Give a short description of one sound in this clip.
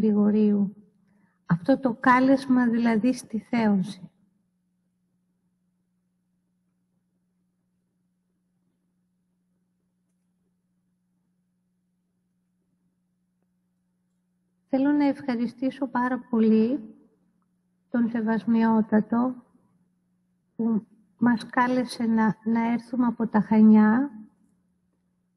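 A woman chants into a microphone in phrases, with long pauses between them.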